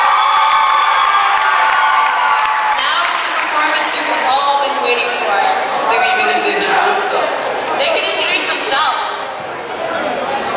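A young woman talks with animation through a microphone in a large echoing hall.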